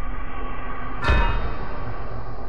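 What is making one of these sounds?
A body thuds heavily onto the ground.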